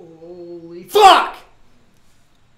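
A young man lets out a loud, sudden shout close to a microphone.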